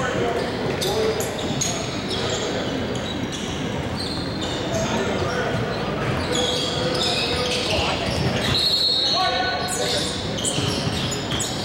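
Young men call out and chatter in an echoing hall.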